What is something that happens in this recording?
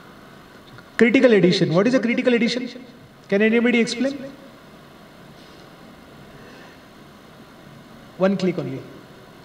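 A man speaks calmly through a microphone, with pauses between phrases.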